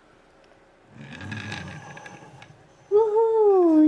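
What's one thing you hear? A small plastic toy car rolls across a hard surface.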